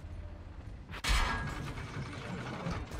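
A cannon fires with a sharp bang.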